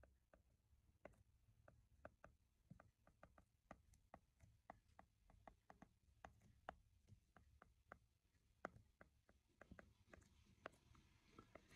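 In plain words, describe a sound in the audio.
A pen taps and scratches lightly on a hard surface.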